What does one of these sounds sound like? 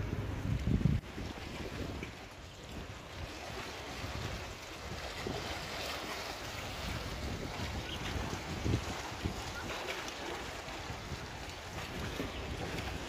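Small waves lap against a stone shore.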